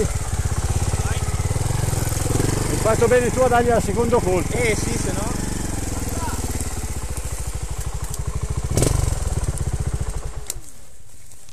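A dirt bike engine idles and rumbles close by.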